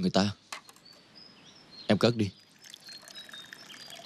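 Water pours into a cup.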